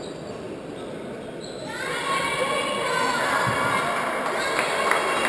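A crowd murmurs and chants in a large echoing hall, swelling louder.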